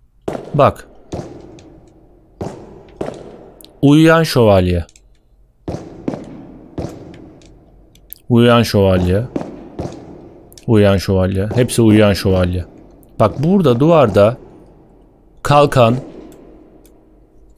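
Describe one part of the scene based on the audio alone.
Footsteps echo on a hard floor.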